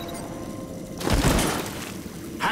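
Footsteps thud heavily as someone lands after a drop.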